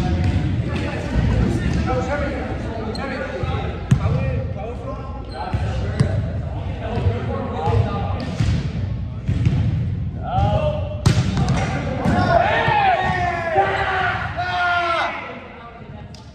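Young men call out and talk with animation in a large echoing hall.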